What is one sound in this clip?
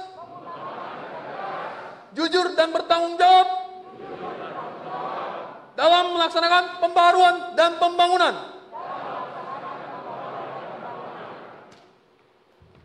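A crowd of men and women repeats the words together in unison.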